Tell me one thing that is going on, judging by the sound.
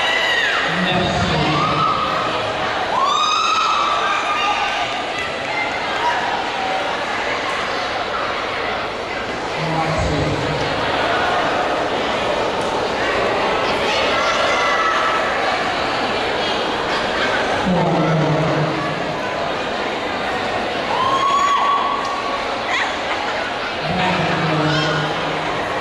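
Music plays loudly over loudspeakers in a large echoing hall.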